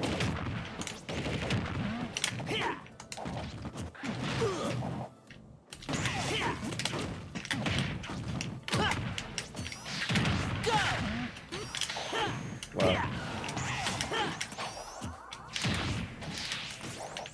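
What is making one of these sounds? Video game punches, blasts and impact effects burst out in quick bursts.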